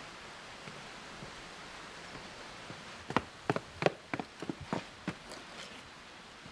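Footsteps tap down stone steps.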